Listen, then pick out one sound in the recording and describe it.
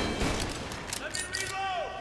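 A pistol is reloaded with a metallic click.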